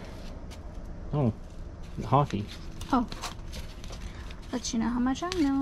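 Paper cards rustle and slap as they are shuffled by hand.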